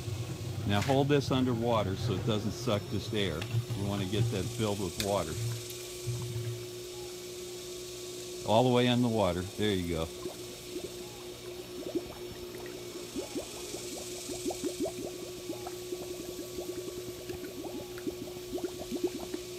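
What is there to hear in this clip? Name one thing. Water splashes softly as a hose fitting is handled in a pool.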